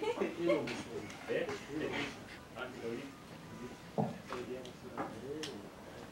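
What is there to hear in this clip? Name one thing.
A young man laughs bashfully.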